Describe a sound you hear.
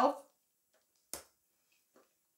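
A card is laid down on a table with a soft tap.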